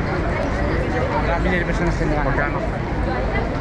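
A man talks animatedly close by.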